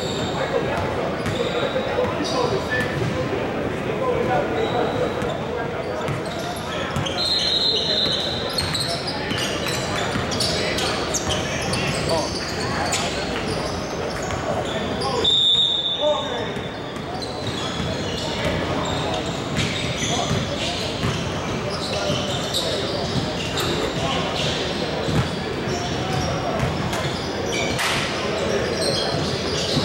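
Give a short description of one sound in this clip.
Players and onlookers chatter and call out in a large echoing hall.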